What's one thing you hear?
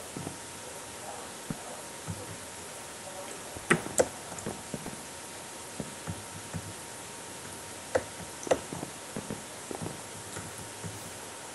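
Footsteps tap lightly on wood and stone.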